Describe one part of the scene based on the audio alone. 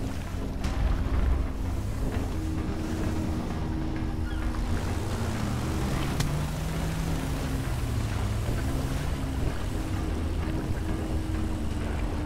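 A boat engine drones steadily, its pitch rising and falling slightly.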